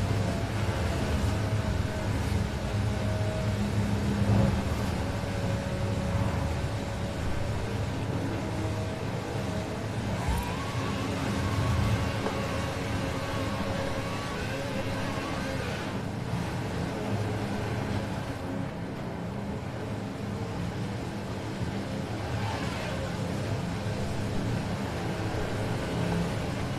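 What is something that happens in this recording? Tyres crunch and hiss over snow.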